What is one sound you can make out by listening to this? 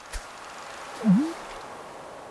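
A bobber plops into water.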